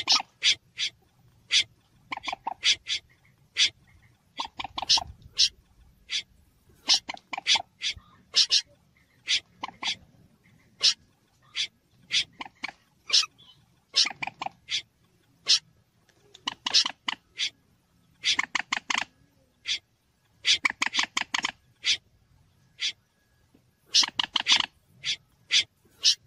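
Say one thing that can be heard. Birds give short, sharp repeated calls in quick bursts.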